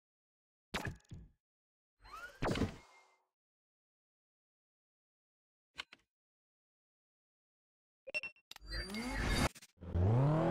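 A game's interface sounds chime and whoosh in short bursts.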